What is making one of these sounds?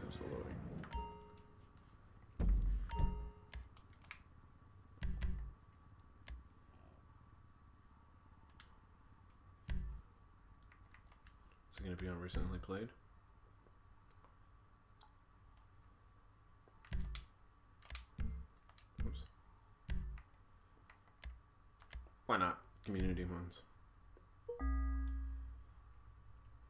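Short electronic beeps sound as menu options change.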